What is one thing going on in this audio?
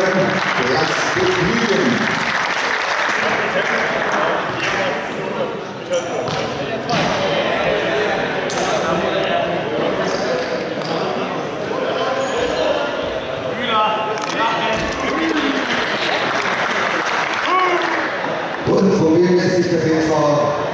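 A man speaks with animation into a microphone, echoing in a large hall.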